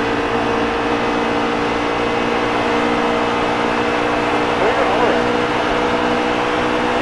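A racing truck engine roars steadily at high revs.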